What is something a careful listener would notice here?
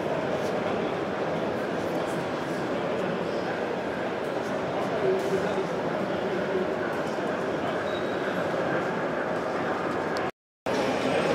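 Model train coaches roll along the track.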